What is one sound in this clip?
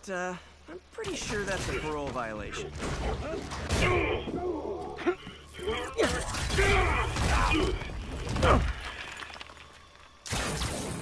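Heavy blows and crashes thud during a scuffle.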